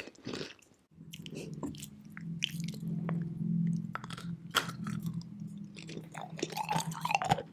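A young woman hums softly with her mouth closed.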